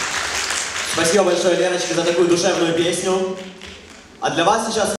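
A young girl sings into a microphone, heard over loudspeakers in a large echoing hall.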